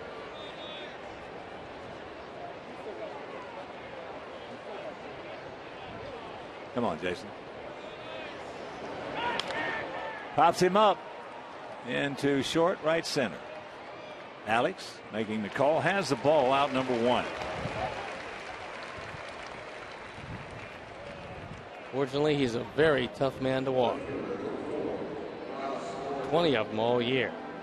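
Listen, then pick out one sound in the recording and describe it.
A large crowd murmurs steadily outdoors.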